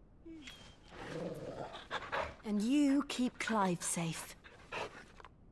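A woman speaks softly and close.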